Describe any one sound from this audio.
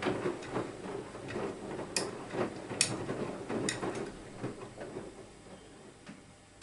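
Water sloshes and laundry thumps inside a washing machine, then quiets down.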